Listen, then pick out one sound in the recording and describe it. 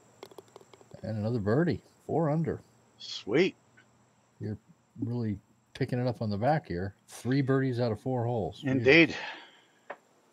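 A middle-aged man talks casually through a headset microphone, close by.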